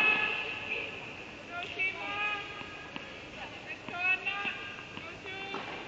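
A tennis ball bounces on a hard court.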